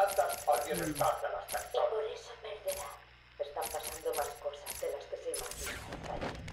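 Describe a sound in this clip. Game menu sounds blip and chime in quick succession.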